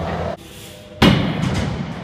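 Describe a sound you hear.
A bike lands on a wooden ramp with a loud thud.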